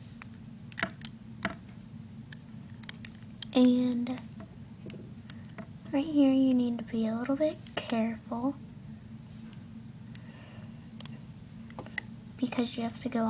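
Plastic beads click and rattle as they are handled.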